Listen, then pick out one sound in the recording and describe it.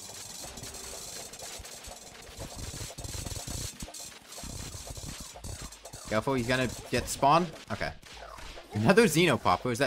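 Video game weapons fire with rapid zapping blasts.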